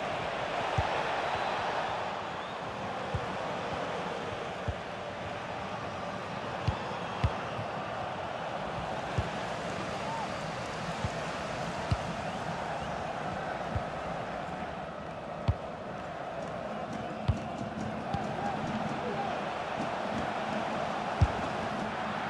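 A ball is kicked with sharp thuds, again and again.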